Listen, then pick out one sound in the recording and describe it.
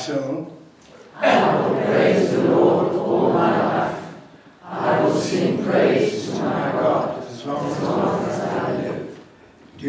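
An elderly man speaks calmly through a clip-on microphone, with pauses.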